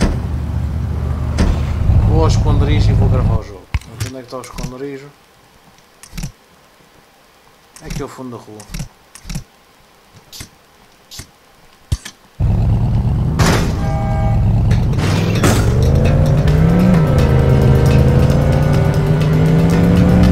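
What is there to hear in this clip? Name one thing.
A car engine rumbles and revs.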